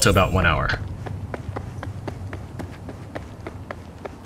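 Footsteps tread steadily on rough ground.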